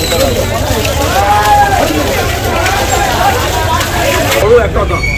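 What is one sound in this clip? Water gushes from a hose onto a man's head and splashes.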